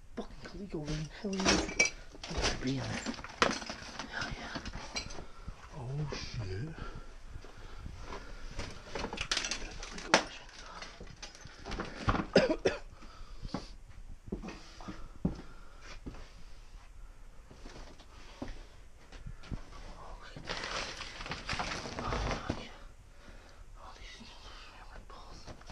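Objects knock and clatter as a hand rummages through them.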